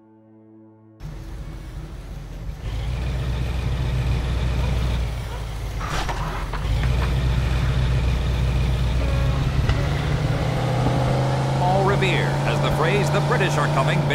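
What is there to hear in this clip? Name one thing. A car engine rumbles steadily as a car drives off.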